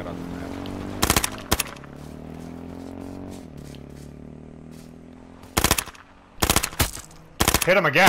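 A rifle fires sharp shots in short bursts.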